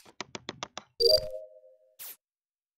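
A bright chime sounds as a task completes.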